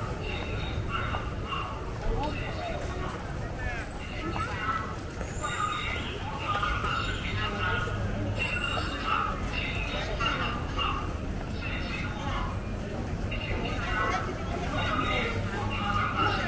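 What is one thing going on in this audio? People chat quietly nearby outdoors.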